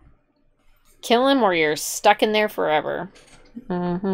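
A young woman talks in reply, close by.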